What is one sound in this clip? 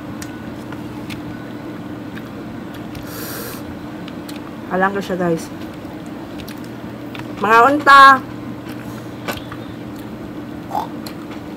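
A woman chews food with soft smacking sounds.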